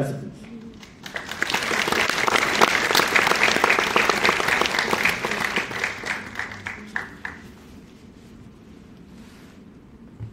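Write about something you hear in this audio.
An elderly woman speaks calmly through a microphone in a large hall.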